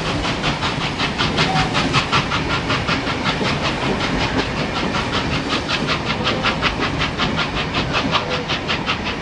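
Two steam locomotives chuff with rapid, sharp exhaust beats as they work hard.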